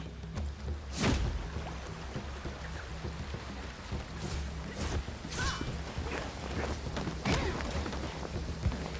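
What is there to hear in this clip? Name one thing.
Magic blasts and blows crack and whoosh in a fight.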